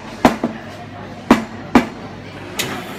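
Porcelain cups clink against each other.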